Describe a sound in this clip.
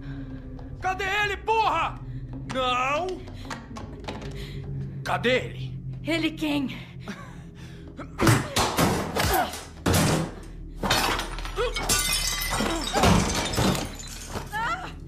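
A woman shouts and screams in distress.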